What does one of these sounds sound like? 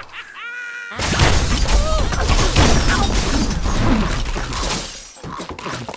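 Wooden and stone blocks crash and tumble down loudly.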